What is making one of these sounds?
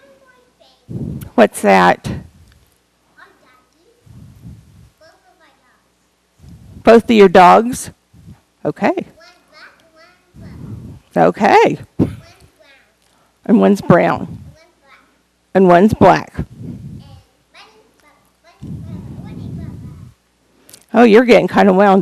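Children sing together in short bursts, close by.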